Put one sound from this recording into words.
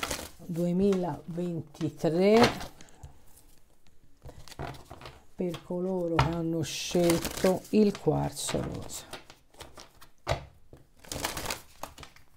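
Cards rustle and tap as they are handled and laid down.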